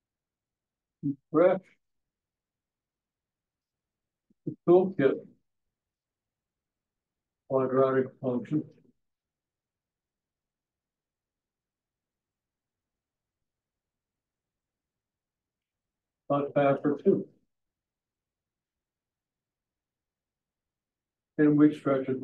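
A man speaks in short phrases, pausing between them.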